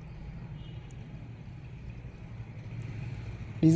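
Liquid trickles from a plastic bottle into an engine opening.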